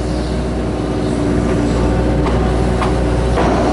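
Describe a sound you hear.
Soil scrapes and thuds from an excavator bucket.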